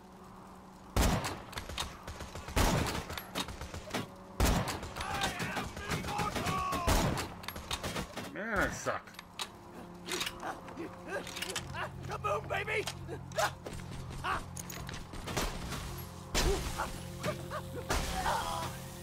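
Loud gunshots fire in sharp single blasts.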